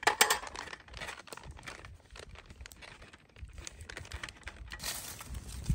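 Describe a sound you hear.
Paper crinkles as a packet is handled.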